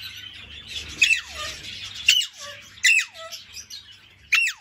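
A parrot gives sharp, shrill screeches that drop in pitch.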